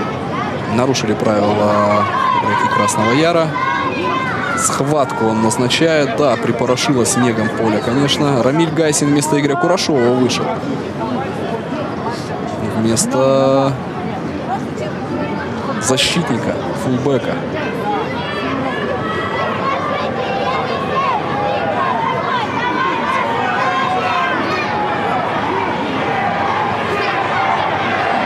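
A crowd murmurs in an open stadium.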